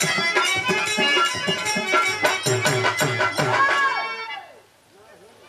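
Instruments and a hand drum play music loudly, then stop.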